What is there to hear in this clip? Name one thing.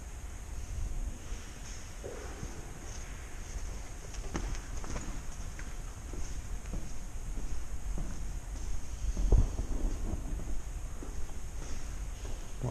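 Footsteps crunch on a gritty floor in a large, empty echoing space.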